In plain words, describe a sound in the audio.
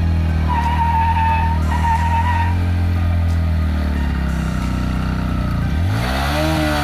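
A motorcycle engine idles with a low, steady rumble.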